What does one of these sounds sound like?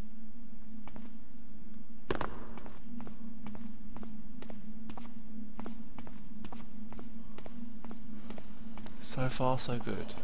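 Footsteps tread steadily on a stone floor.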